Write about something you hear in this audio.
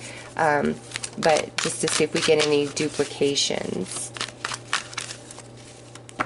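Playing cards riffle and flutter as a deck is shuffled.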